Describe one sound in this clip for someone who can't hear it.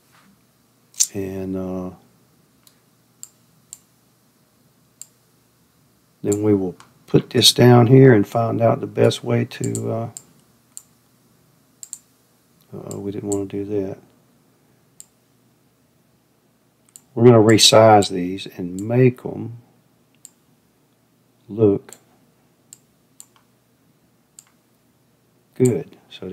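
An older man speaks calmly into a close microphone, in short bursts with pauses.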